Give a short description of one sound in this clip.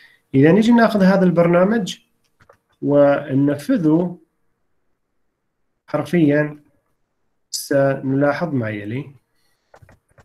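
A man explains calmly through an online call, in short bursts with pauses.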